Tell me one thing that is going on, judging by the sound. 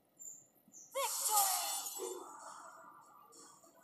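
A bright game victory fanfare plays.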